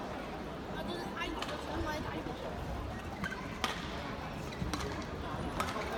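A shuttlecock is struck with a racket in sharp pops.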